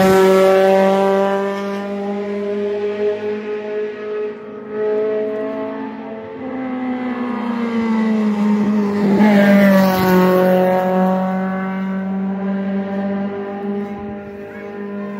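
A racing car engine roars and revs hard as the car speeds past up close.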